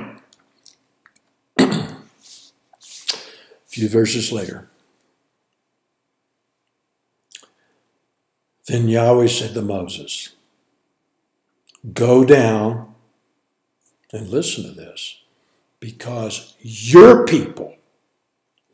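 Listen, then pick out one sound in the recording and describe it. An older man speaks calmly and slowly into a microphone, with long pauses.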